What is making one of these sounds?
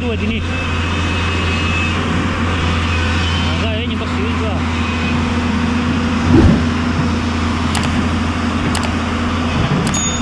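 A diesel excavator engine rumbles steadily.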